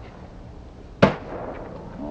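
A skateboard slams down onto concrete.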